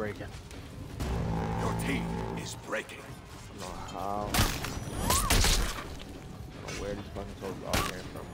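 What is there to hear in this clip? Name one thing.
A crowd of soldiers shouts and roars in battle.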